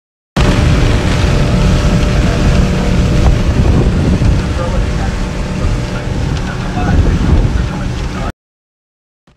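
A boat motor roars steadily.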